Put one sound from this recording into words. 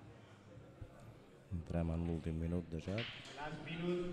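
A cue strikes a pool ball with a sharp tap.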